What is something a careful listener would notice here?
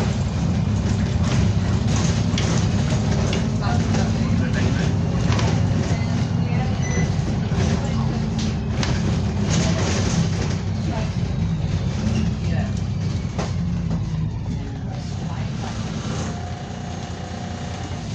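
A diesel bus engine drones, heard from inside the bus as it drives along.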